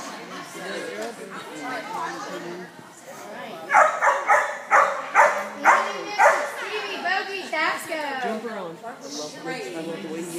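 A woman calls out to a dog with animation in a large echoing hall.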